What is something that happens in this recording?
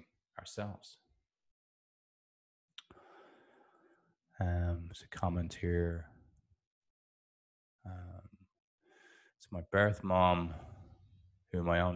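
An older man speaks calmly and close into a microphone, in short phrases with pauses.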